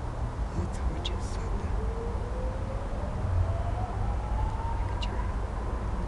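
A woman speaks quietly nearby.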